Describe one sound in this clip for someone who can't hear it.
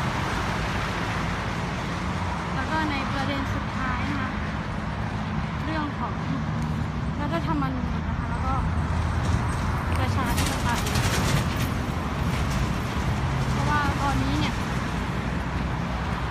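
Traffic roars steadily past on a nearby road.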